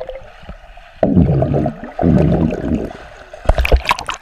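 Bubbles gurgle underwater as a young man blows out air.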